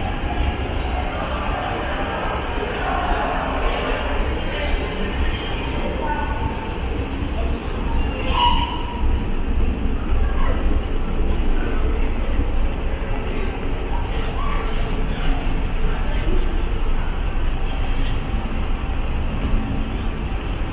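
A freight train rolls slowly past with a low rumble and clanking wheels, echoing under a large station roof.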